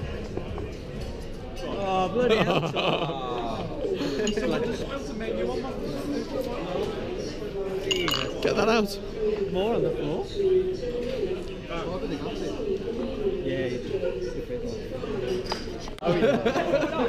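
Several men chat and laugh together.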